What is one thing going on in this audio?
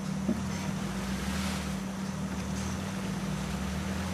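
Water splashes as a vehicle drives through a stream.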